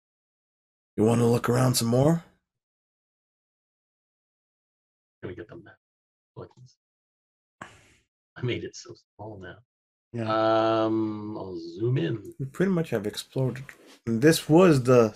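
Several men talk with animation over an online call.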